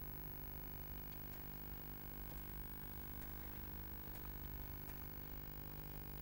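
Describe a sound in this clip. Footsteps tap slowly on a hard stone floor.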